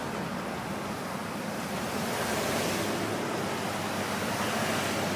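A large vehicle drives past close by.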